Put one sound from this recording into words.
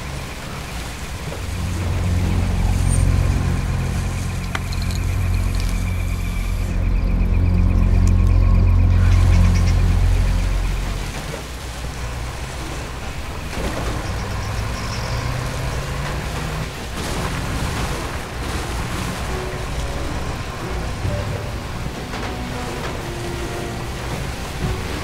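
A truck engine rumbles loudly, then settles to a lower drone.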